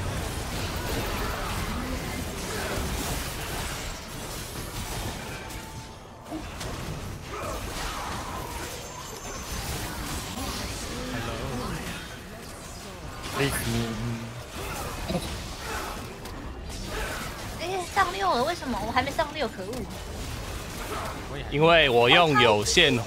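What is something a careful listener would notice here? Magic spells burst and clash in quick, noisy bursts.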